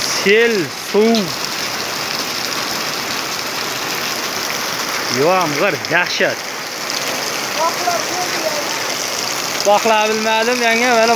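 Heavy rain pours steadily onto wet ground outdoors.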